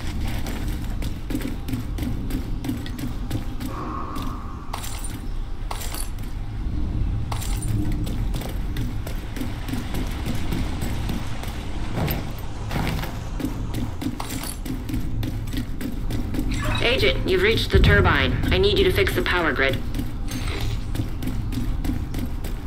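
Heavy footsteps run over hard floors and metal stairs.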